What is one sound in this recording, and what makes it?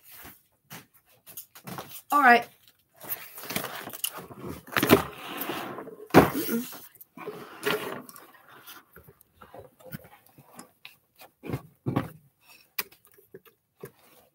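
A large sheet of paper rustles and flaps as it is handled.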